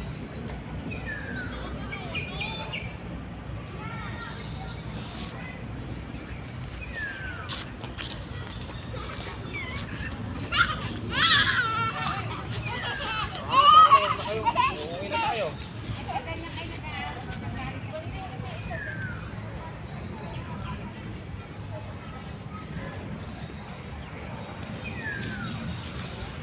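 Birds chirp in the trees.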